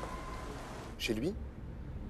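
A man speaks with animation into a phone.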